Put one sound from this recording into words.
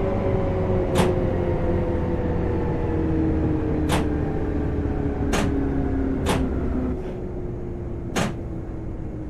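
Train wheels click sharply over rail joints now and then.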